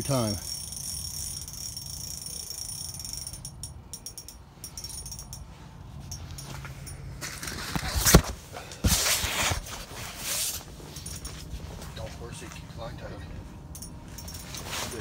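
A fishing reel whirs and clicks as a line is reeled in.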